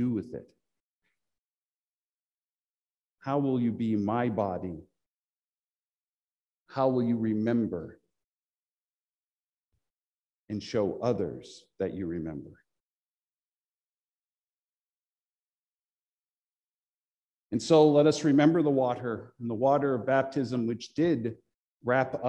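A middle-aged man speaks calmly and clearly to the microphone, with long pauses.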